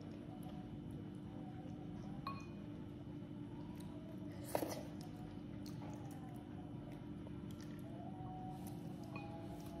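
Utensils clink against a bowl.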